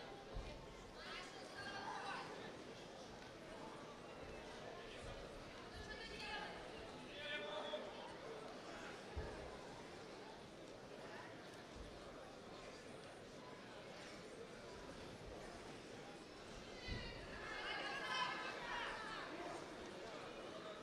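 Spectators shout and cheer in bursts.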